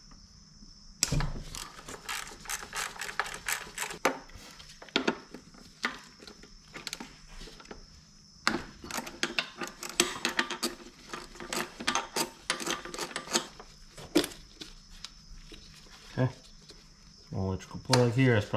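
Metal engine parts click and rattle as hands work on them.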